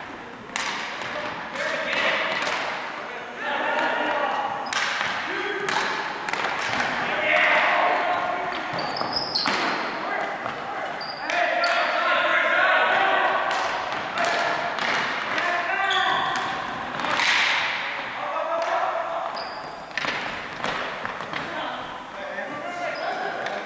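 Players shout and call out to one another in a large echoing hall.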